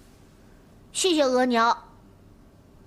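A young boy speaks in a high, thin voice.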